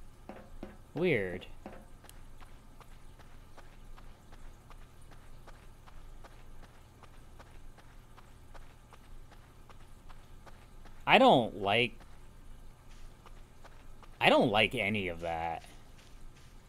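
Footsteps tread softly on dirt.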